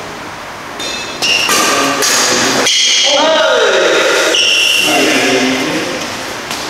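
Sneakers squeak sharply on a hard court floor in an echoing hall.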